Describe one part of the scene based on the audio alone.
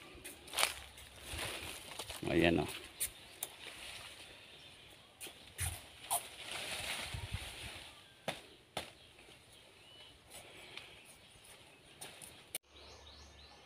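Dry palm fronds rustle and scrape as they are dragged over the ground.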